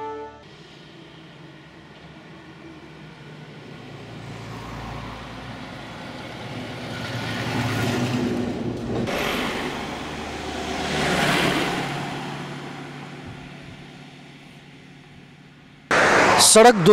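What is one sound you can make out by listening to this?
Traffic passes by outdoors, with vehicles swelling and fading as they pass.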